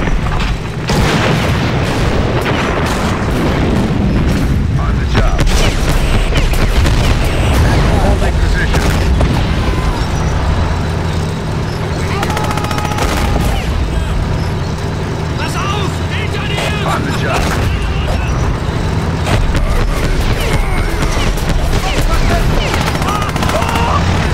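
Engines rumble low and steadily.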